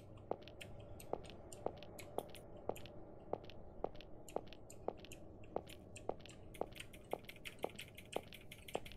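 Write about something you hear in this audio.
Footsteps tap at a steady, even pace.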